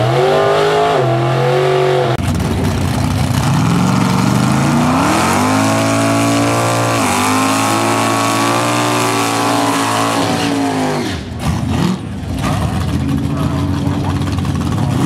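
Loud car engines idle and rev.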